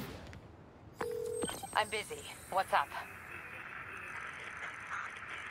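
Electronic tones beep and hum.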